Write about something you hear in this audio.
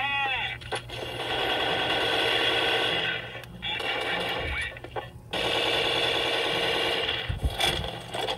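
Loud music plays from a video game's speakers.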